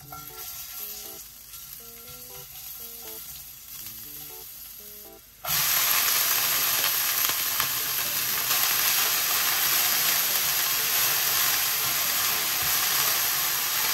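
A spatula scrapes and stirs in a metal pan.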